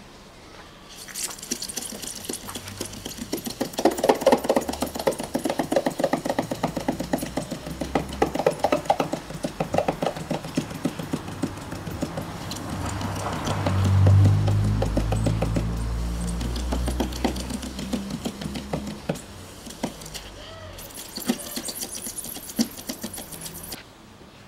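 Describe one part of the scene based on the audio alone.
A cloth rubs back and forth across a car's paintwork.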